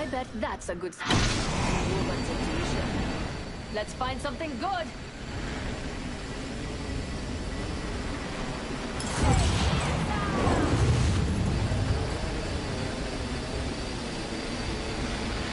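Wind rushes loudly during a fast dive through the air.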